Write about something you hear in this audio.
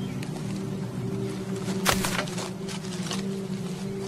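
A dead branch scrapes and cracks as it is dragged over the ground.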